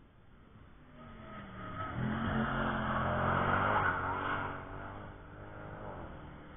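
A car speeds past close by, its engine roaring and then fading.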